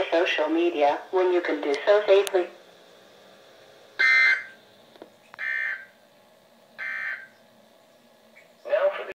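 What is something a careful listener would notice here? A radio loudspeaker plays a synthetic voice reading out.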